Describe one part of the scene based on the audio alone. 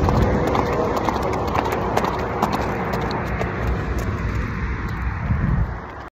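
A horse's hooves clop on a hard road.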